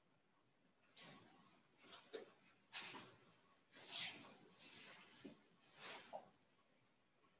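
Clothing rustles against a mat as a woman shifts and sits up.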